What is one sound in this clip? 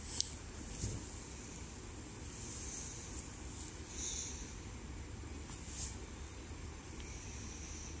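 A baby rustles bedsheets while squirming.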